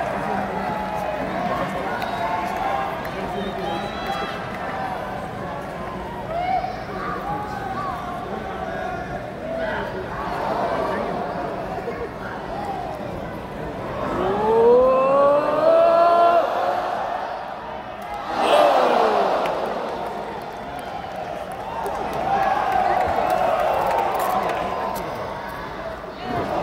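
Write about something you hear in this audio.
A large arena crowd cheers and chants.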